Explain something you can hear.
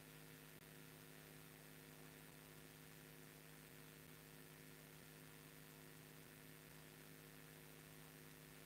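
Air coolers hum steadily.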